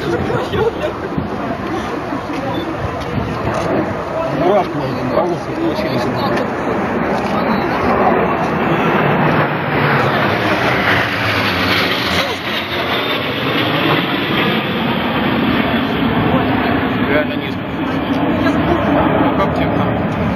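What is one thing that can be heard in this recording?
Jet planes roar loudly overhead.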